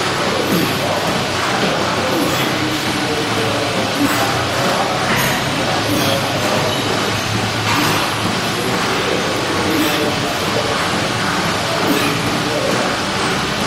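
A man grunts and breathes hard with strain.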